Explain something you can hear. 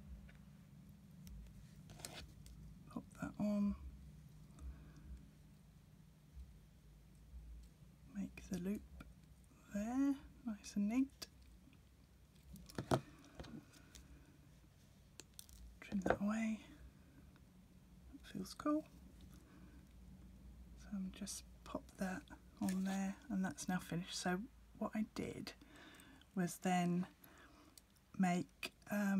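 Small metal pliers click and tap against tiny metal rings.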